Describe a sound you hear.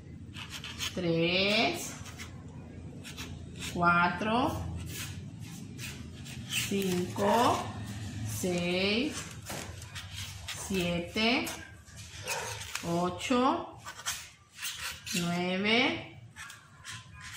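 A woman speaks slowly and clearly close by, drawing out her words.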